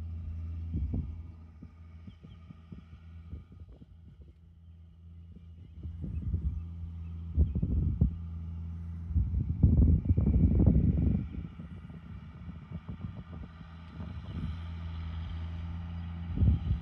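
A large tractor engine drones steadily nearby.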